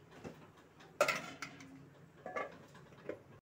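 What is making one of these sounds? A metal lid clatters onto a pot.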